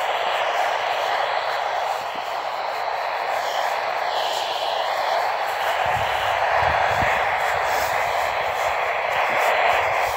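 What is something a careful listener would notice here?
A small radio speaker hisses with loud, steady static.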